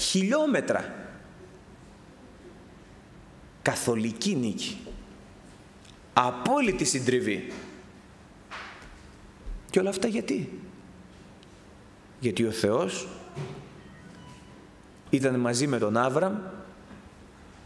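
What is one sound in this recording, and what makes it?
A middle-aged man speaks slowly and deliberately into a microphone, in short phrases with pauses, in a reverberant room.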